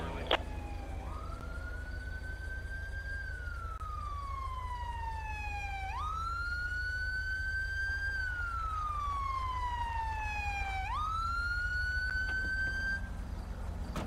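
A police siren wails, slowly rising and falling in pitch.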